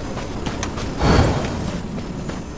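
A fiery spell whooshes through the air with a rushing roar.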